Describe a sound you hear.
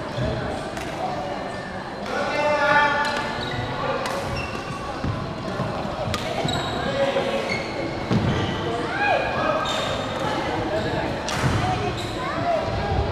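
Players chatter and call out in the background of the echoing hall.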